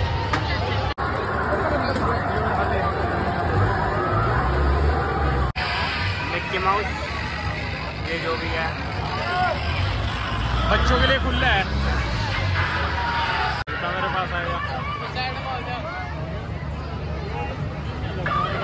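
A large outdoor crowd chatters and calls out all around.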